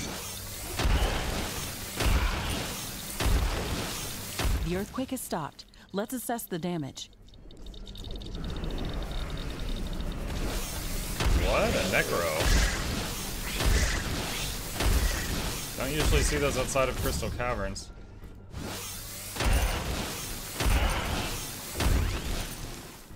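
Gunfire and explosions from a game boom and crackle.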